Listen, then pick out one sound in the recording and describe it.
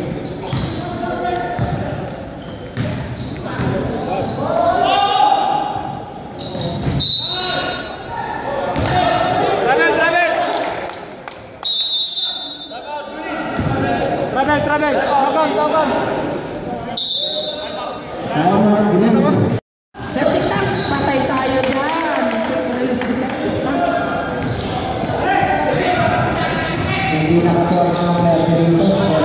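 Men shout and talk in a large echoing gym.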